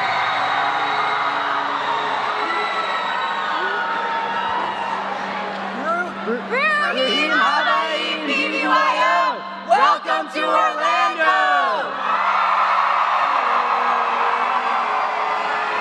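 A crowd cheers and shouts in a large hall.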